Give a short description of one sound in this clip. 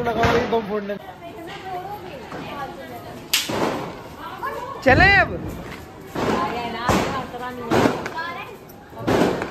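Women and children talk and call out nearby.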